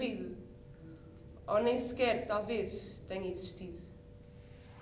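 A young woman speaks with feeling.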